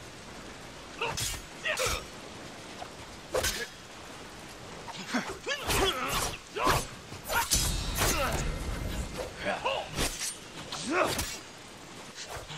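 Steel swords clash and ring sharply again and again.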